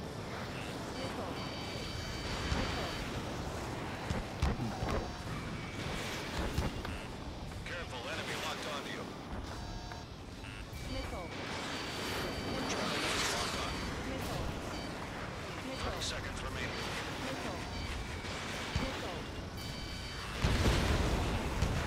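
Electronic warning beeps sound in short bursts.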